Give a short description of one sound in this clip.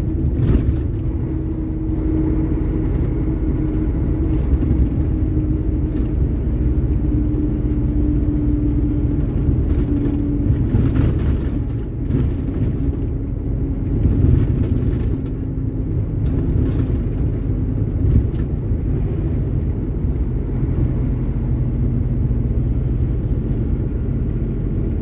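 A vehicle's engine drones steadily while driving.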